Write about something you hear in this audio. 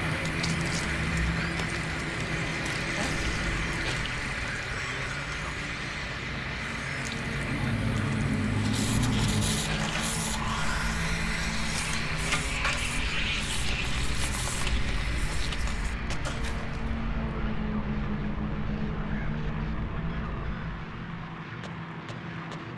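A creature shuffles its feet across a hard floor.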